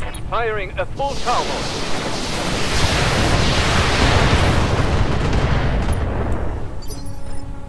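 Missiles explode with a loud roaring blast.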